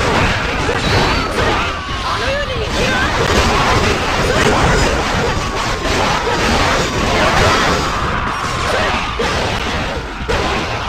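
Swords clash and slash rapidly in a chaotic battle.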